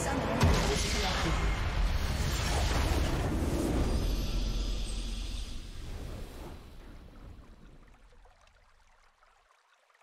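A triumphant game fanfare booms out and slowly fades away.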